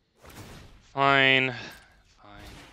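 A bright electronic chime rings and fades.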